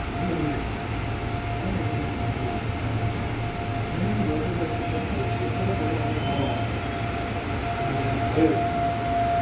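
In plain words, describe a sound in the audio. A subway train rumbles steadily along the track.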